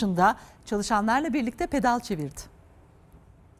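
A woman speaks clearly into a studio microphone, like a news presenter.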